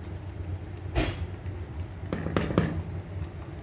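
A metal pot clanks against a stove grate.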